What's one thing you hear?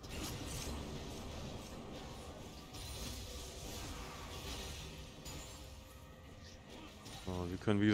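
Game weapons clash and strike repeatedly.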